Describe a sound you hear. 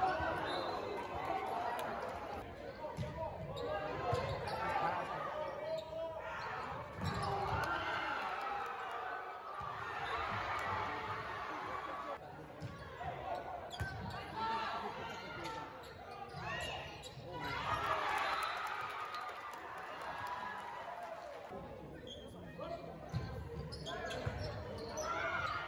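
A crowd of spectators chatters and cheers in a large echoing gym.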